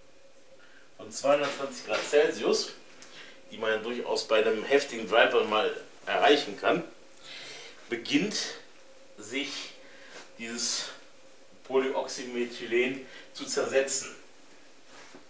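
A man speaks calmly nearby, in short phrases.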